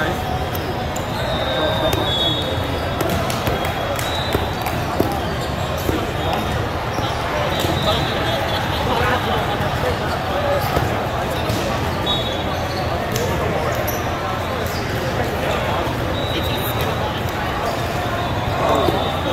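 A busy crowd murmurs and chatters throughout a large echoing hall.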